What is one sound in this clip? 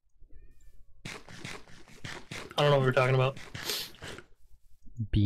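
A game character munches loudly on food.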